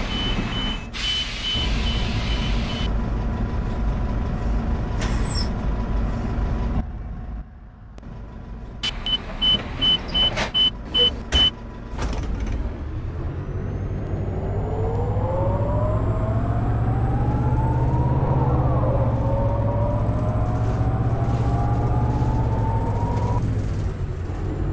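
A bus engine rumbles and revs higher as the bus speeds up.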